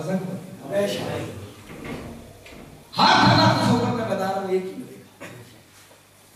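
A man speaks with feeling into a microphone in an echoing hall.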